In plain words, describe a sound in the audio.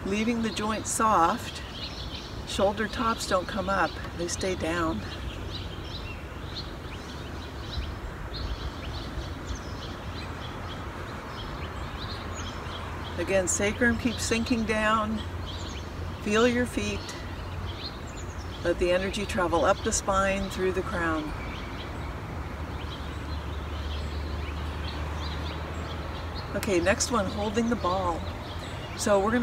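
An elderly woman speaks calmly, close by, in short phrases with pauses.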